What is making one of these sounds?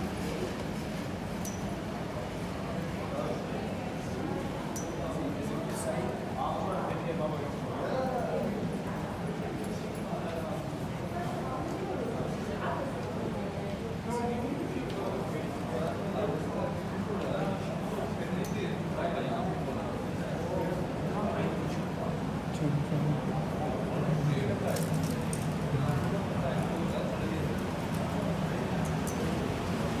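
Voices of a crowd murmur in a large echoing hall.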